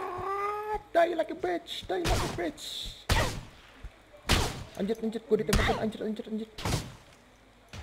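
Fists thud in hard punches.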